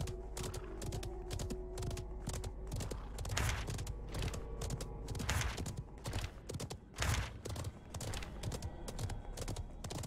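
Horse hooves clop in a quick, steady rhythm.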